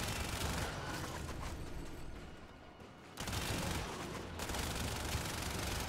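An energy weapon fires with a loud crackling roar.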